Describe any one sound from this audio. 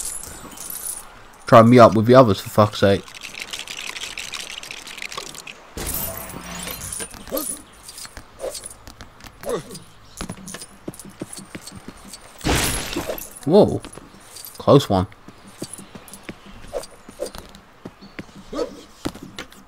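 Small coins chime as they are picked up.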